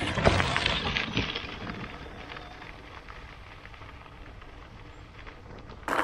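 Bicycle tyres crunch over gravel and fade into the distance.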